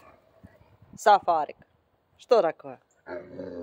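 A large livestock-guardian dog whines and grumbles in short, sliding vocal bursts.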